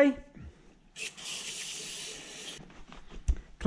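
An aerosol spray can hisses in a steady burst.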